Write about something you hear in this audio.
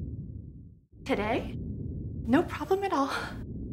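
A woman speaks into a phone with animation.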